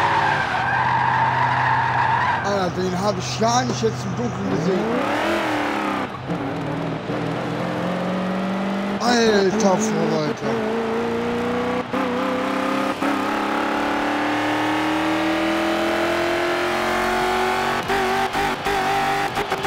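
A race car engine roars and climbs steadily in pitch as it speeds up.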